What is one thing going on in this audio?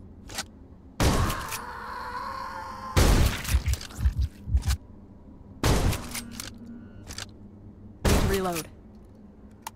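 Gunshots fire in loud, sharp bursts.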